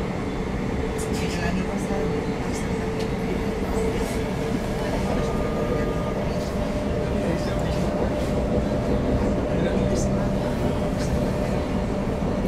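Wheels click and rattle over the rail joints.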